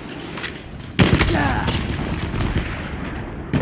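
A large explosion booms and crackles.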